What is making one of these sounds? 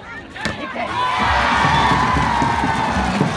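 A crowd cheers loudly.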